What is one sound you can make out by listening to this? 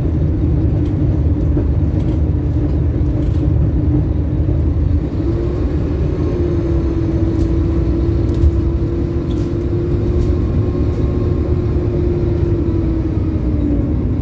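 A bus rattles and clatters lightly as it drives along.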